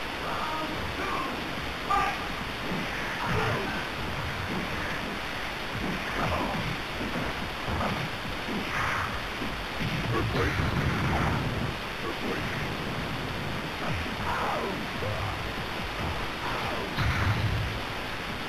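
Punches and hits land with sharp thuds and crunches.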